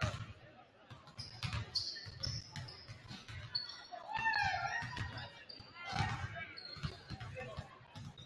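Basketballs bounce on a hardwood floor in a large echoing gym.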